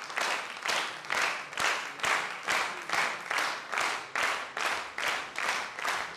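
An audience claps steadily in rhythm in a large hall.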